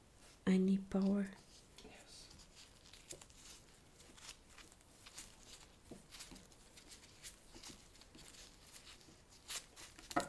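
A cable rustles and scrapes as it is handled.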